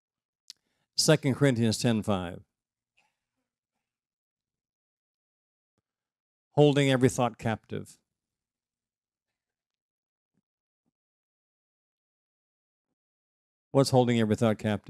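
An elderly man speaks calmly through a microphone, in short bursts with long pauses.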